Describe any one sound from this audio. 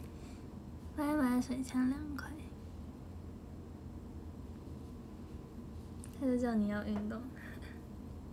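A young woman talks close to a microphone in short bursts.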